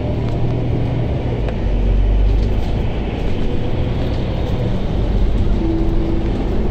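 Car traffic rumbles low and steady along a street.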